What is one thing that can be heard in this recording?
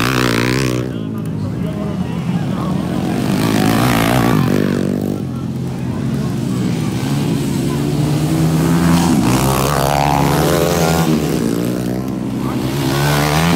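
Dirt bike engines rev loudly and whine up and down nearby.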